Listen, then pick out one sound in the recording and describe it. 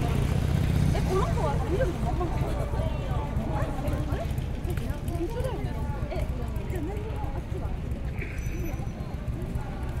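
Women chat nearby on a street.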